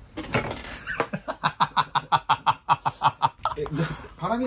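Young men laugh loudly close by.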